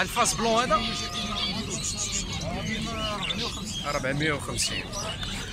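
Many small birds chirp and whistle close by.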